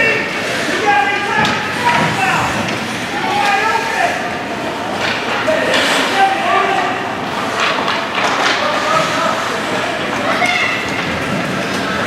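Spectators talk and call out in an echoing rink.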